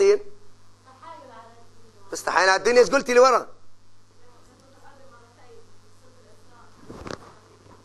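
An elderly man lectures with animation, loud at first and then quieter.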